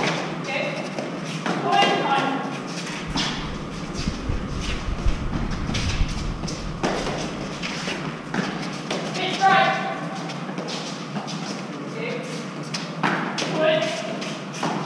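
Gloved hands strike a hard ball against a stone wall in an echoing walled court.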